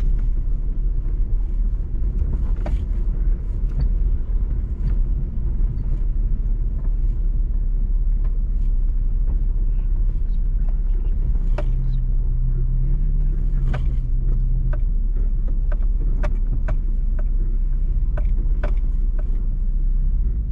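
An engine rumbles steadily as a vehicle drives along a bumpy dirt track.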